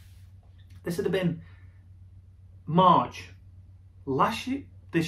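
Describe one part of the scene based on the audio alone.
A man speaks expressively in short bursts, close to the microphone.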